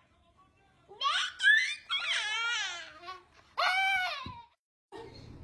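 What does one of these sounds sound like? A young boy cries out and wails loudly.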